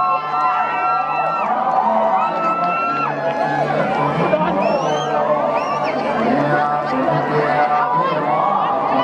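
Music with wavering, sliding melodies plays loudly through loudspeakers.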